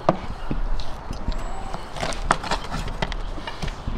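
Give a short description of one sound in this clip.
A knife cuts through raw meat.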